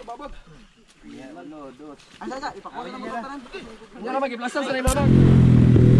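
Several young men shout and call out to each other outdoors.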